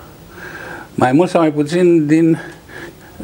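Another elderly man speaks calmly through a microphone.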